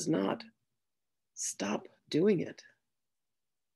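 A woman speaks calmly and softly close to a microphone.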